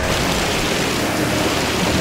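Tyres screech in a long drift.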